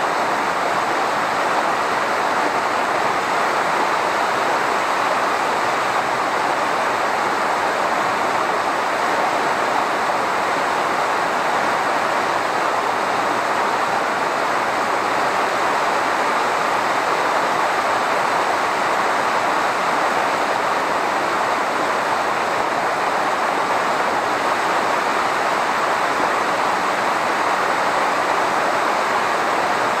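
A waterfall roars steadily in the distance.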